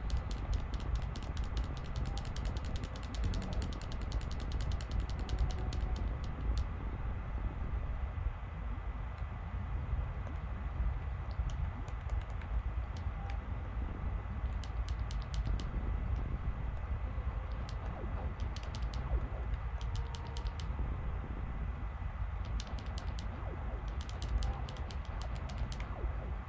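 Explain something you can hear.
Low, rumbling video game music plays throughout.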